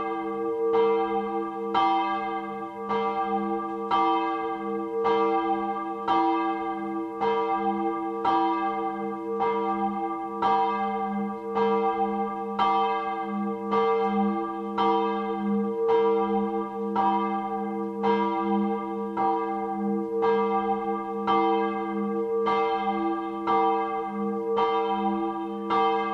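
A church bell tolls steadily and rings on between strokes.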